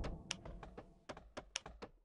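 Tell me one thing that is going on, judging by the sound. A fire roars and crackles.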